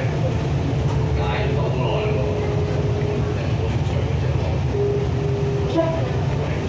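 Electric motors whine as an electric train slows into a station.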